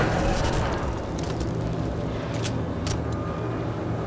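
A rifle rattles as it is handled.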